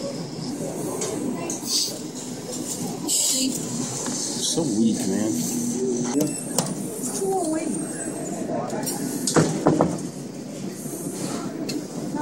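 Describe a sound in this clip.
A claw machine's claw whirs as it moves.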